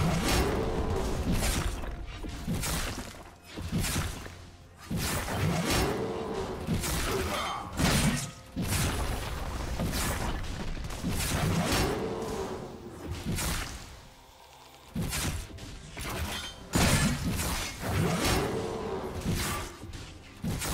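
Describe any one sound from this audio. Spell effects crackle and burst in a fast fight.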